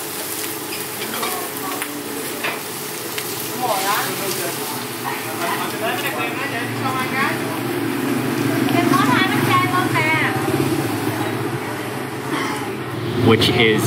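A metal pan clanks against a stove.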